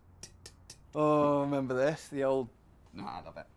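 A young man sings a drawn-out note close by.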